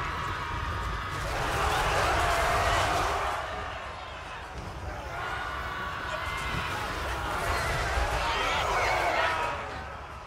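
A loud battle clamour of many soldiers roars.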